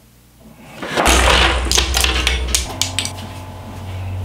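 Wooden chess pieces crash and clatter across a table.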